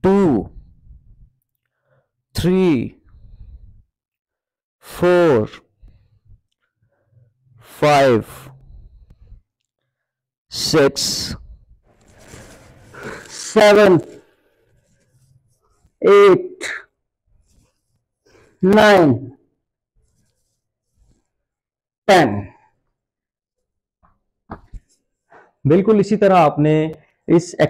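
A man calls out short counts in a loud, clear voice, at intervals of a few seconds.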